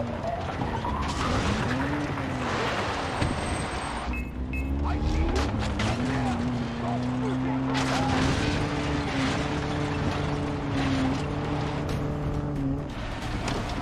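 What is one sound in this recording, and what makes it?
A car engine drones and revs up and down.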